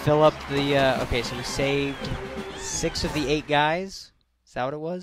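Confetti bursts with a cheerful festive jingle.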